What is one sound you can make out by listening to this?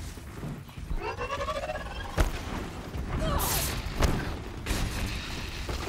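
A robotic creature whirs and screeches.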